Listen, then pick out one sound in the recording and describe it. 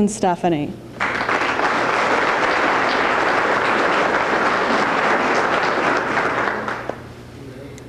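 An audience applauds loudly and steadily, then fades out.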